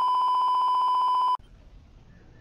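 A steady high test tone beeps.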